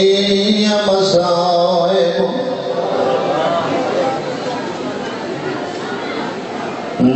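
A man recites in a strong, chanting voice through a microphone and loudspeakers.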